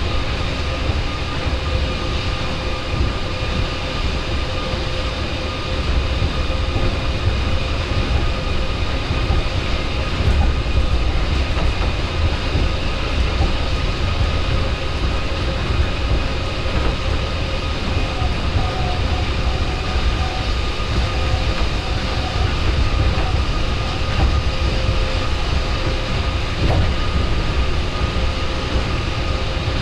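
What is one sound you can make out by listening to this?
A train hums and rumbles steadily along an elevated track.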